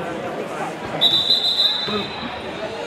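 A referee's whistle blows shrilly.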